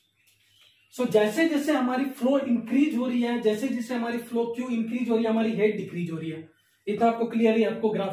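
A man lectures in a calm, explaining voice, close by.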